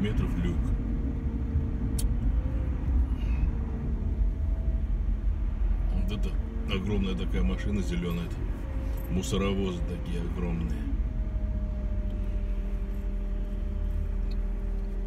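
A car engine hums steadily from inside while driving.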